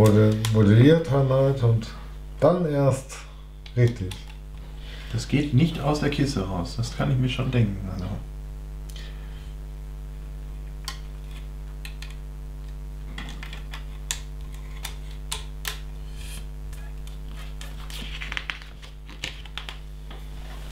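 Plastic bricks click and rattle as they are handled.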